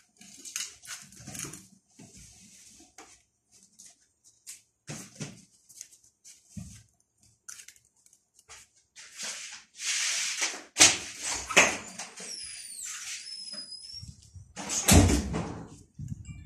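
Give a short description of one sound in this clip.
Kittens scuffle and paw at each other close by.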